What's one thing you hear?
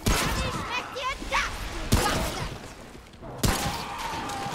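Gunshots bang sharply, echoing off walls.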